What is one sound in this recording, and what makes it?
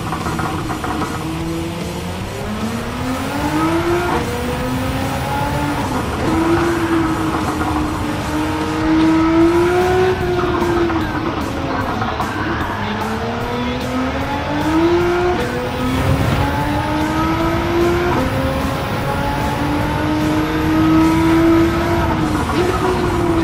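A race car engine revs high, rising and dropping as gears shift.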